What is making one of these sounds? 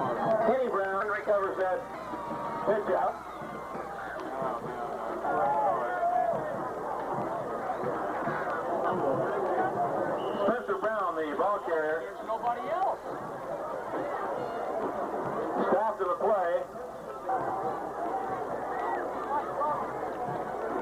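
Men on the sideline shout and call out loudly nearby.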